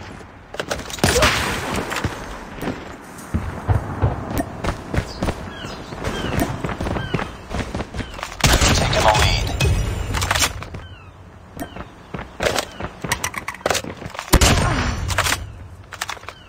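Gunshots crack and boom in quick bursts.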